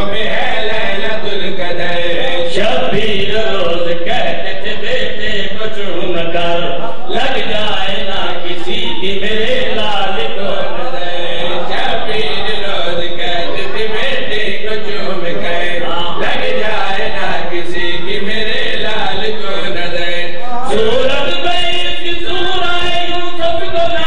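Several men chant loudly together into a microphone, heard through loudspeakers.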